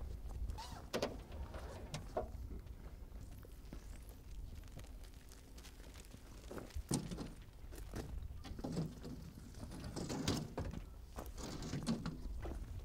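Metal panels clank as they are unfolded and set down.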